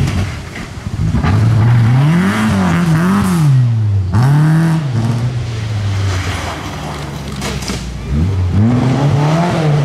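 A rally car engine revs up and down as the car accelerates hard.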